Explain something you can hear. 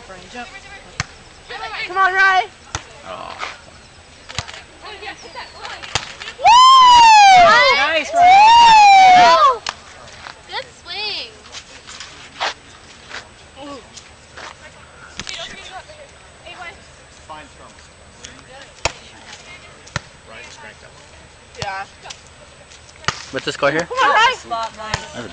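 Hands strike a volleyball with sharp slaps.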